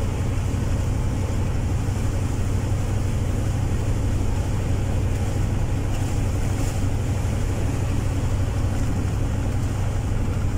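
A vehicle engine drones steadily from inside the cab while driving.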